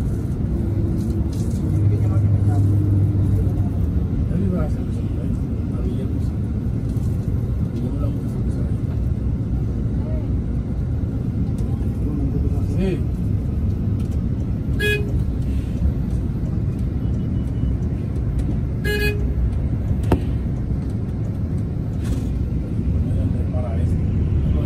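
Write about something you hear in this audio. A vehicle engine hums and tyres roar on the road from inside a moving car.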